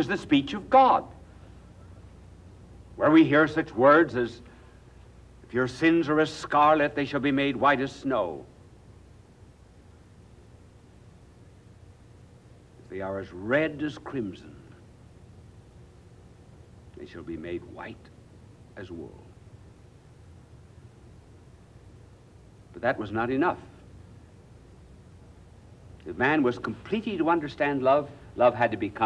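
An elderly man speaks slowly and solemnly, with long pauses, through a microphone.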